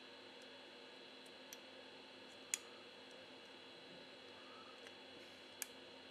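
A circuit board clicks as it is lifted out.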